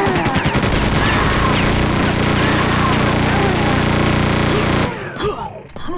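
A chaingun fires in a rapid, steady rattle.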